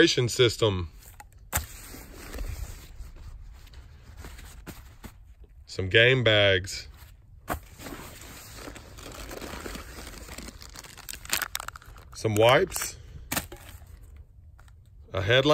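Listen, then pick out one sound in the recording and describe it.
Gear rustles and knocks as hands handle it.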